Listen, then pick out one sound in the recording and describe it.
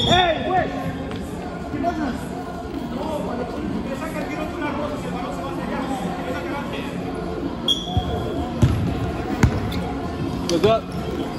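A ball is kicked with a dull thump.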